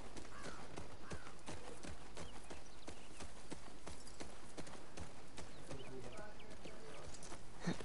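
A horse's hooves thud slowly on soft ground.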